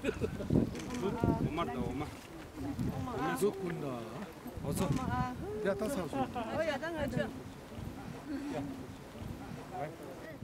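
Several men and women talk and laugh together nearby outdoors.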